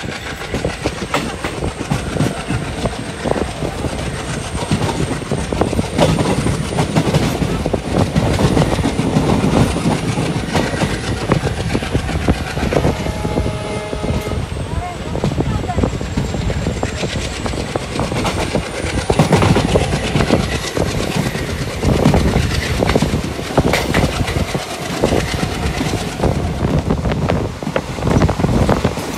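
A train rattles and clatters steadily along the tracks.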